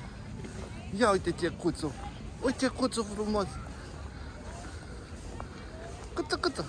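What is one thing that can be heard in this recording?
A toddler babbles close by.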